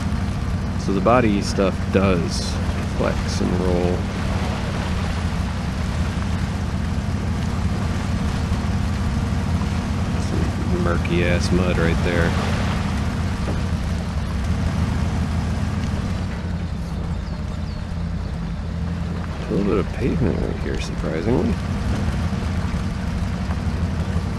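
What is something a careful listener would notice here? A truck engine rumbles steadily as it crawls over rough ground.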